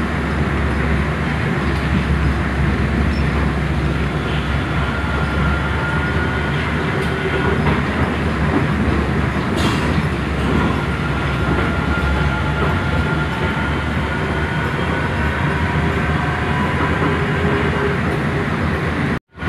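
A train rumbles and hums steadily along the track, with a rising and falling motor whine.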